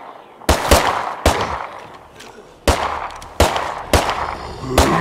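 Gunshots crack sharply in quick succession.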